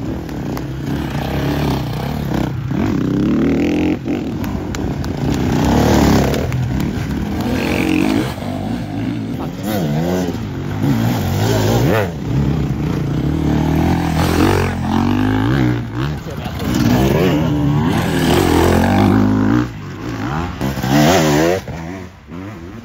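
Dirt bike engines rev loudly and rise and fall in pitch as riders pass close by.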